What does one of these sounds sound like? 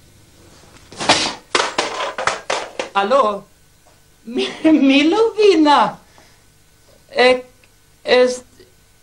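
A man speaks loudly and cheerfully into a telephone, close by.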